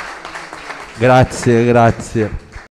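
A second man speaks briefly into a microphone.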